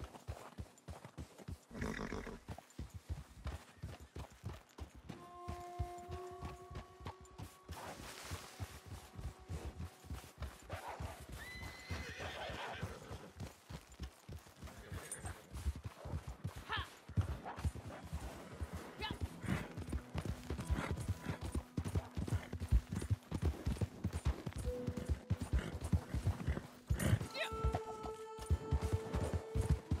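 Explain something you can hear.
A horse gallops with quick, steady hoofbeats on snow.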